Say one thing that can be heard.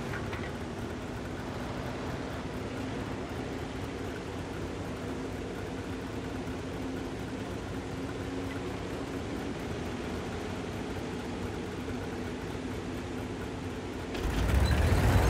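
A tank engine idles with a low, steady hum.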